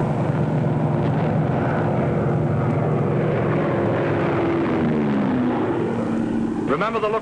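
A propeller plane engine drones overhead, its pitch slowly falling.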